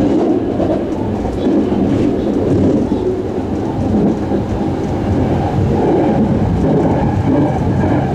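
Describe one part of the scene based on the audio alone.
A train rumbles and rattles steadily along the tracks, heard from inside a carriage.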